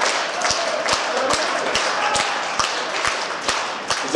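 An elderly man claps his hands.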